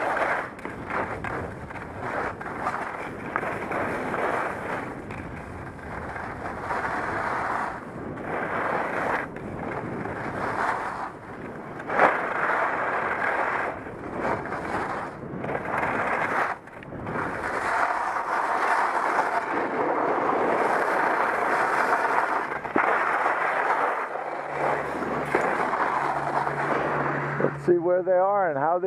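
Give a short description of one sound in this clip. Skis scrape and hiss over packed snow, surging with each turn.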